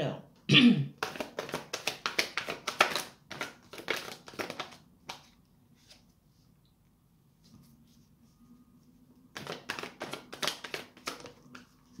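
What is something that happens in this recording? Playing cards flick and riffle quickly as a deck is shuffled by hand.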